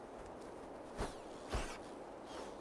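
A large bird's wings beat with soft whooshing flaps.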